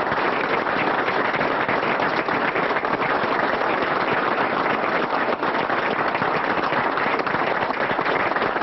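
A crowd applauds loudly and steadily.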